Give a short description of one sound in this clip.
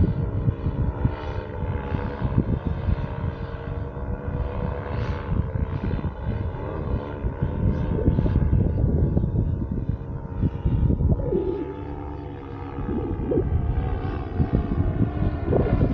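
A paramotor engine drones steadily overhead.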